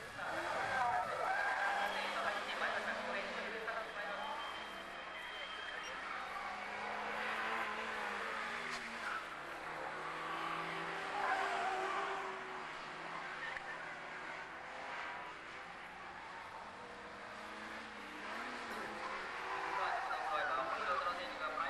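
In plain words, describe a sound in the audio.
A small car's engine revs hard, rising and falling.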